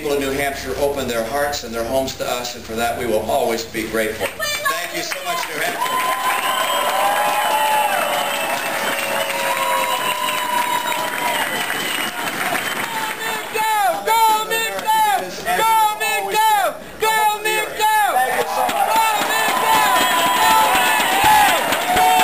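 A large crowd cheers and claps.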